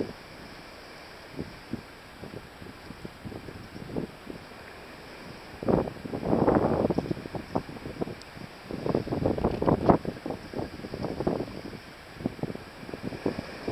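Small waves wash gently onto a beach in the distance.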